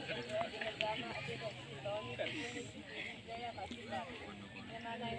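A large crowd of men, women and children chatters outdoors.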